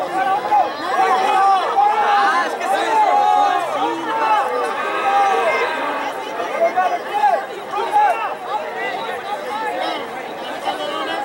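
A group of young men shouts and cheers loudly outdoors.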